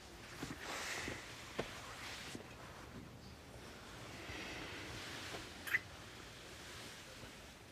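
A man and a woman kiss softly.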